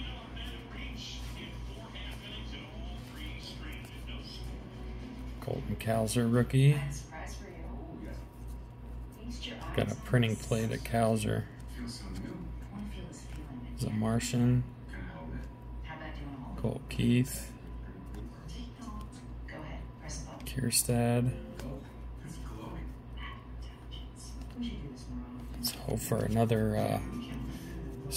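Trading cards rustle and slide softly as they are flipped through by hand.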